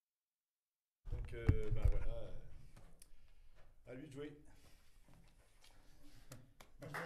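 A drummer taps lightly on drums and cymbals.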